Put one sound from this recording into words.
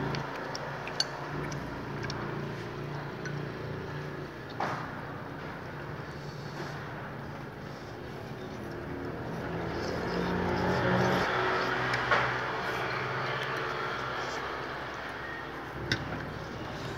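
Chopsticks and a spoon clink against a bowl.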